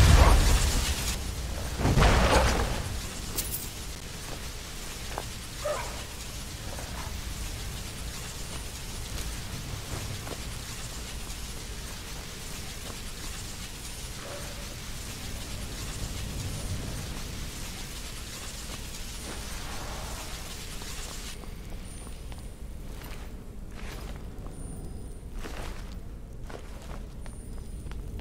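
A magic spell crackles and hums steadily.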